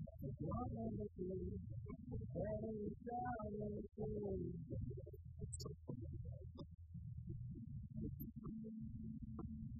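An electric guitar plays chords.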